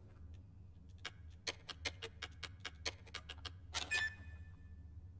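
Keypad buttons beep in quick succession.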